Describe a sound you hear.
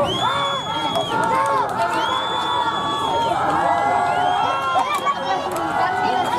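A crowd of spectators cheers and shouts outdoors in the distance.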